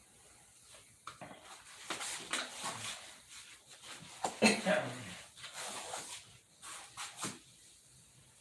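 An elderly man talks calmly nearby.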